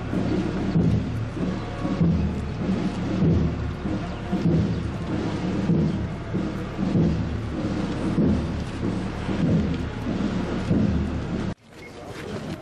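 A crowd of men chants loudly in rhythm outdoors.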